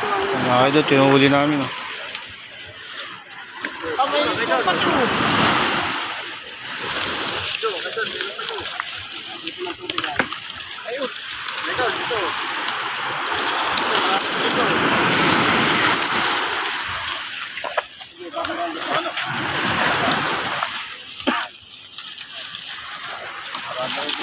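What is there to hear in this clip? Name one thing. Fish flap and slap against the ground inside a net.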